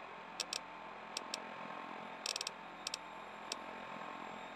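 Short electronic clicks tick in quick bursts.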